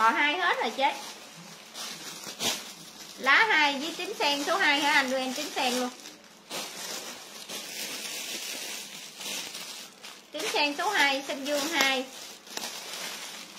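Plastic wrapping crinkles as it is handled.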